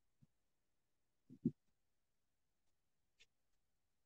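A marker squeaks faintly on paper.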